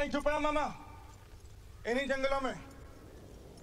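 A horse neighs loudly twice.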